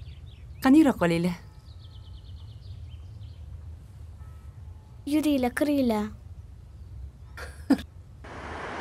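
A woman calls out loudly nearby.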